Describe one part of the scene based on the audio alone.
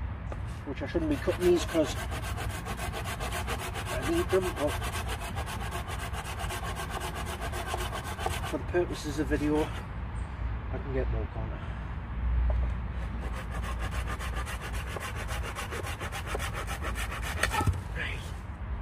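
A hand saw cuts through a branch with quick, steady strokes.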